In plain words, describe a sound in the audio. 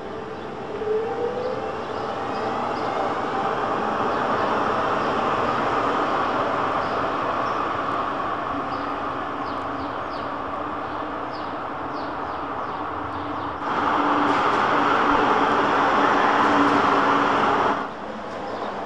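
A tram rolls past on rails.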